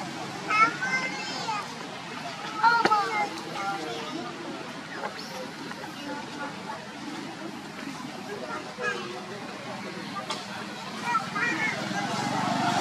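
A baby monkey squeals in short high cries.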